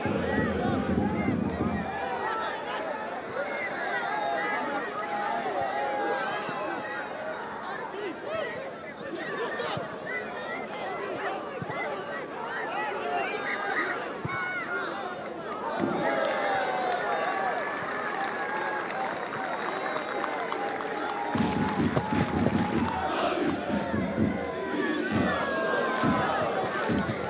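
A large crowd chants and sings loudly in an open stadium.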